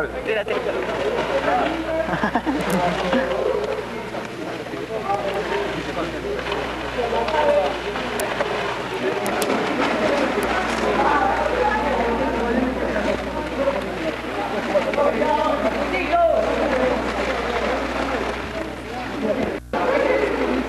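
Men talk and shout with animation close by, outdoors.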